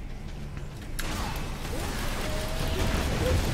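Gunfire rattles.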